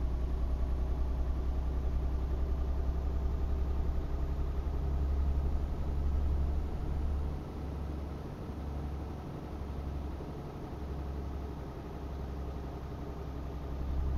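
Tyres roll on the road with a steady hum.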